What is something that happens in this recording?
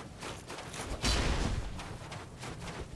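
A heavy thud and rumble strikes the ground.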